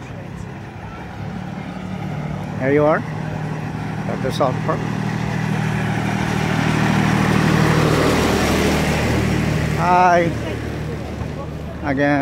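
A small road train engine rumbles steadily as it passes close by.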